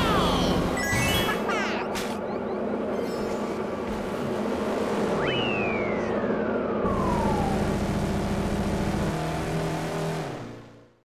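A small motor engine hums steadily as a kart races along.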